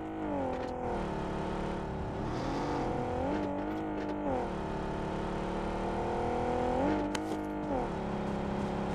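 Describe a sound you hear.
A car engine hums and revs as a vehicle drives.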